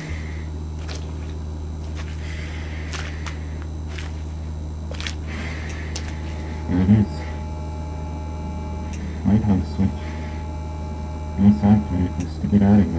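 A fluorescent light hums steadily overhead.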